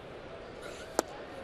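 A pitched ball smacks sharply into a catcher's mitt.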